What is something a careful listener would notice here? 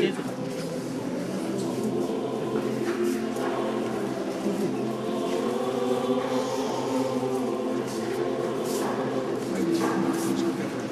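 A group of men and women sing a hymn together nearby, in a large echoing hall.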